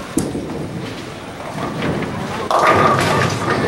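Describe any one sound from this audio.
A bowling ball rumbles down a lane.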